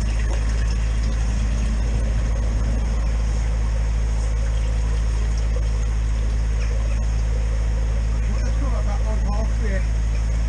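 A motor drones steadily and loudly.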